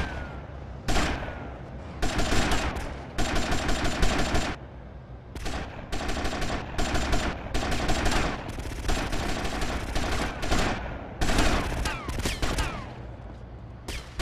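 A machine gun fires in long, rapid bursts.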